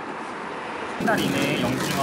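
A plastic shopping bag rustles.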